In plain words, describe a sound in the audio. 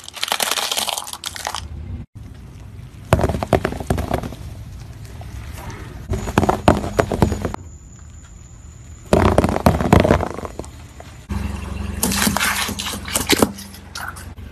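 A car tyre crushes brittle objects with loud crackling and crunching.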